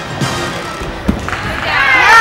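A gymnast lands with a dull thud on a mat.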